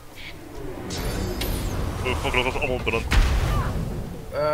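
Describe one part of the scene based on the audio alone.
A fiery blast bursts with a roar and crackles.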